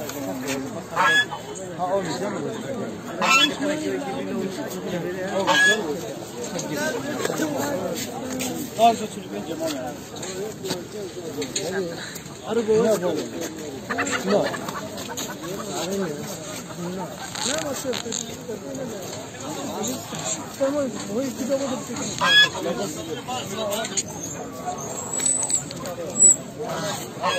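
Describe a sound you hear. Geese honk and cackle nearby.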